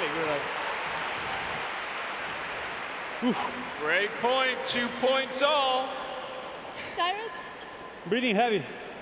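A large crowd applauds and cheers, then fades.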